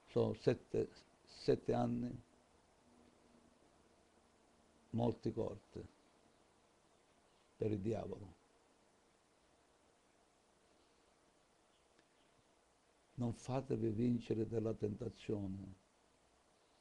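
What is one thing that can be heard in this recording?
An elderly man speaks calmly and close to a microphone, in short bursts with pauses.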